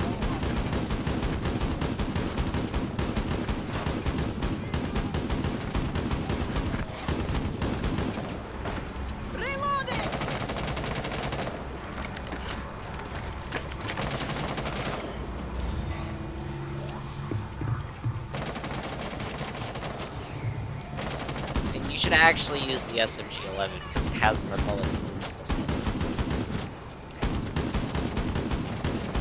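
Rapid gunfire bursts loudly and close by.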